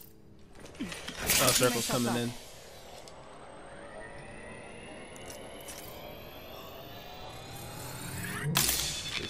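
A med kit charges up with a rising hum.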